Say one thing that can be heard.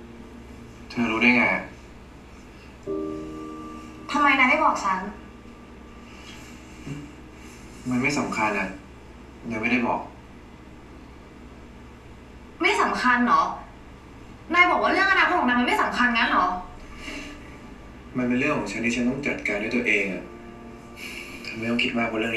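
A young man answers quietly, heard through a loudspeaker.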